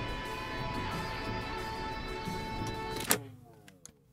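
Game music plays and stops abruptly.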